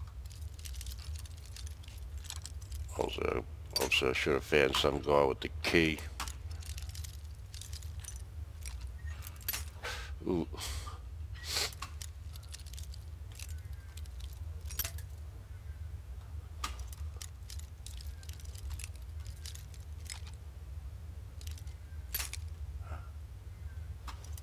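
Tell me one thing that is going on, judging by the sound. A metal lockpick scrapes and clicks inside a lock.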